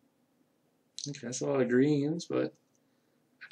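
A young man speaks briefly and with animation, close to a microphone.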